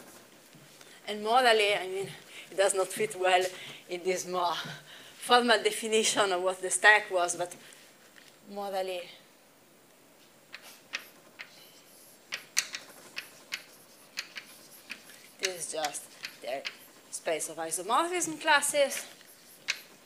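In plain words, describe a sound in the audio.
A young woman lectures calmly.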